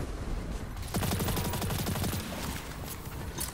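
A heavy weapon lets out a loud, rushing burst.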